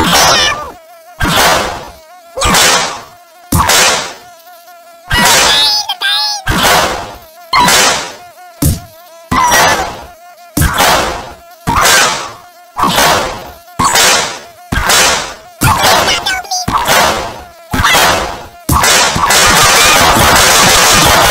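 A swatter slaps down with sharp, smacking hits, again and again.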